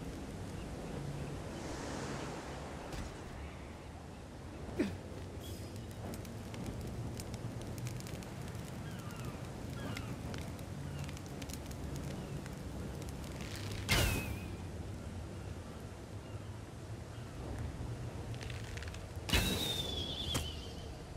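Fire crackles steadily.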